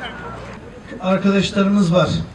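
A man speaks loudly into a microphone over a loudspeaker, outdoors.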